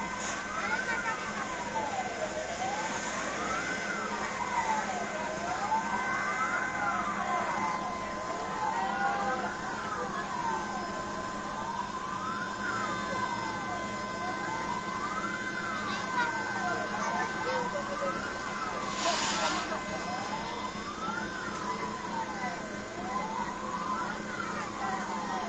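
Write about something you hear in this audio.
A siren wails up and down steadily nearby.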